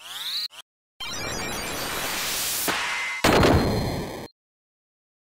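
A shimmering magic spell effect chimes and swells.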